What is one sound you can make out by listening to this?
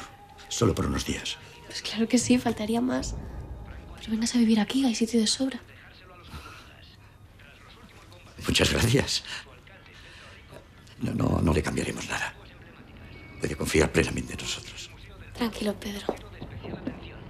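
A middle-aged man speaks calmly and warmly, close by.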